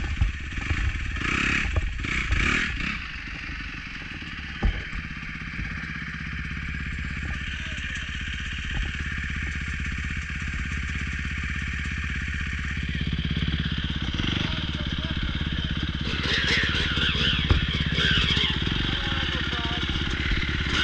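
A dirt bike engine idles close by with a steady low rumble.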